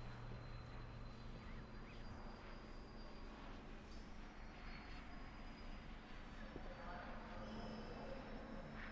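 A man speaks calmly close to a microphone.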